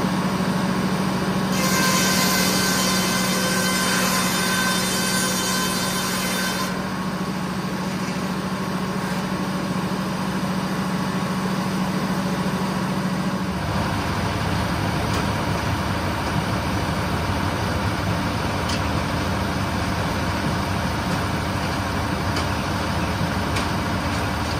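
A sawmill engine runs with a loud, steady drone.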